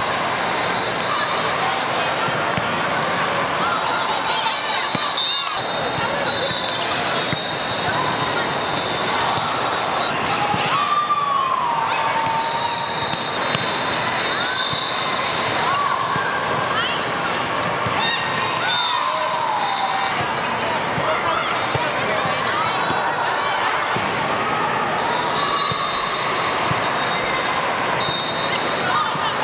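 Volleyballs thump as players hit them.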